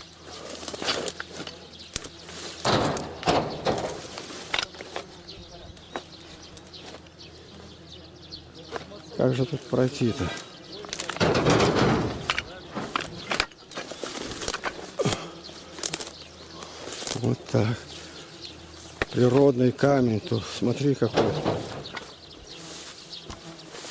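Tall grass and leafy plants rustle and swish as someone pushes through them.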